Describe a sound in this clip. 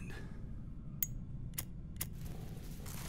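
A lighter clicks several times.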